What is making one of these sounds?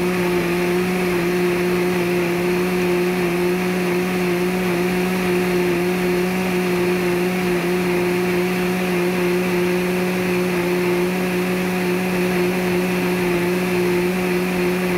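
A blender motor whirs loudly and steadily, churning a thick liquid.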